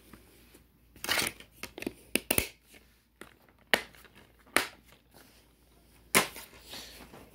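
A plastic DVD case clicks and rattles as it is handled.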